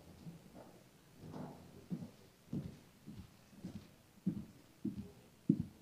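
A woman's footsteps knock on a wooden floor.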